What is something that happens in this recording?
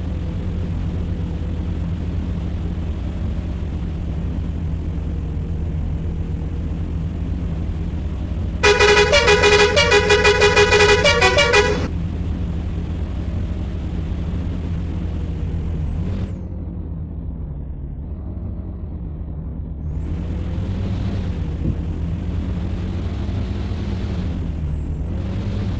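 A truck engine drones as the truck drives along.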